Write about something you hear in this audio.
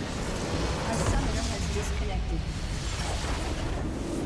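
A large structure in a video game explodes with a heavy crash.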